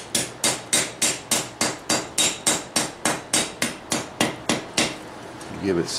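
A hammer rings rapidly and steadily on an anvil.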